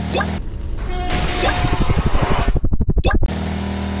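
A vehicle crashes into a truck with a loud clatter.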